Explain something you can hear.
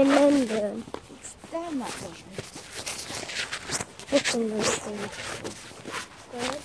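Footsteps scuff along a paved path.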